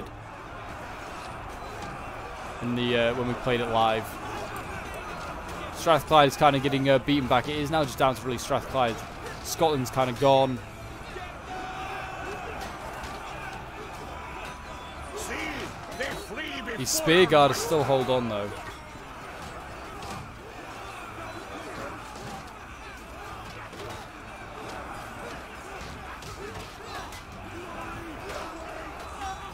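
A crowd of men shouts and roars in battle.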